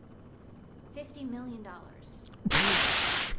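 A woman speaks calmly into a phone.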